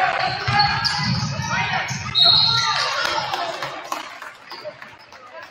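A crowd cheers loudly in an echoing gym, then quiets down.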